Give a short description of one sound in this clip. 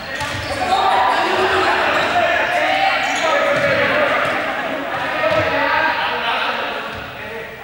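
A crowd of children chatters and shouts in a large echoing hall.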